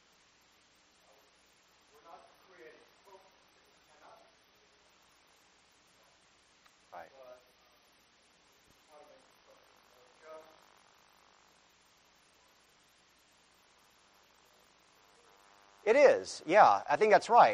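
A middle-aged man speaks calmly into a lapel microphone, with pauses.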